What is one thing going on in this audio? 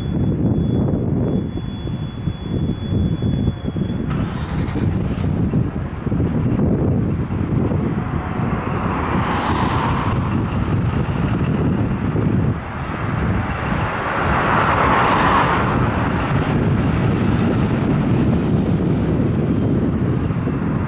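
A large truck engine idles with a deep, steady rumble.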